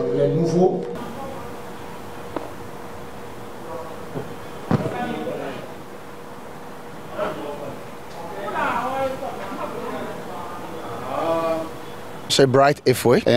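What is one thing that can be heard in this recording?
A man speaks to a group in a room with some echo.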